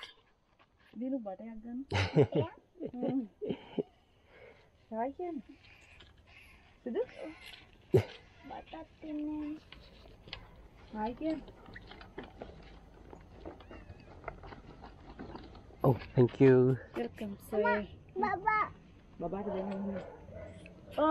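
A small boy talks close by.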